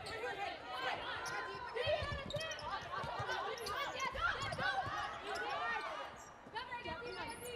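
A crowd cheers and murmurs in a large echoing hall.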